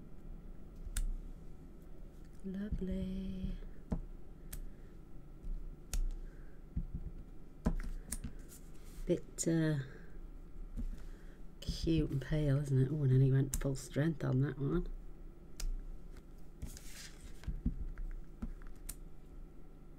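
A stamp taps down on paper.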